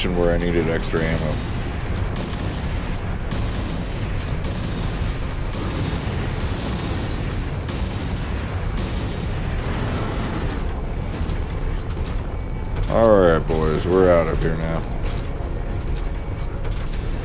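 A low rumble drones steadily.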